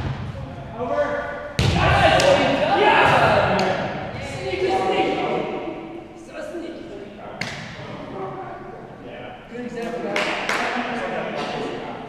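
Men call out and talk loudly in a large echoing hall.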